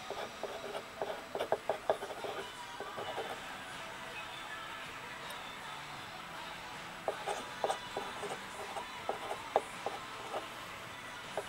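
A pen scratches and taps on paper close by.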